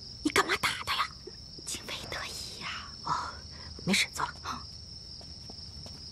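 A woman answers in a low, calm voice.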